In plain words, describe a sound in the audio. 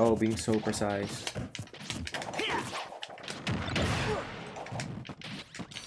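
Video game fighting sounds of hits and whooshes play quickly.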